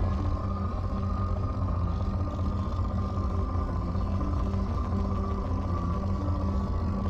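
A low electronic scanner hum drones steadily.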